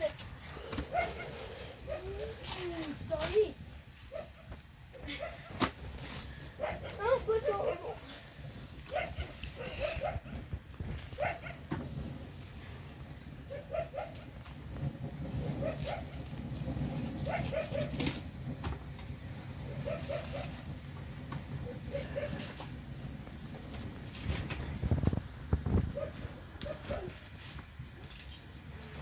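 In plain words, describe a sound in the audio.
Cabbage leaves crackle and snap as they are torn off by hand.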